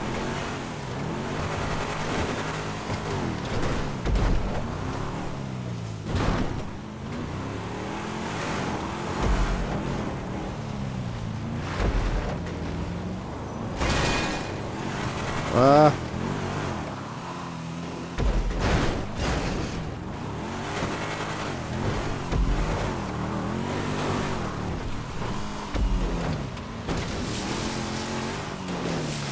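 A car engine roars and revs while driving over rough ground.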